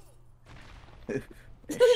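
A heavy punch lands with a dull thud.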